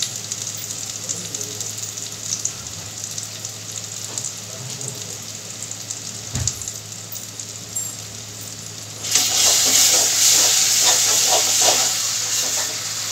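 Food sizzles in a hot pan, suddenly growing louder.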